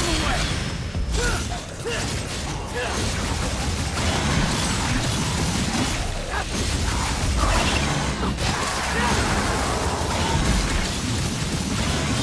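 Sword blades slash and clash rapidly.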